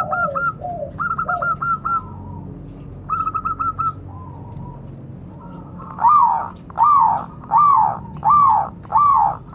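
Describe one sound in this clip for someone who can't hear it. A zebra dove coos in rapid trills.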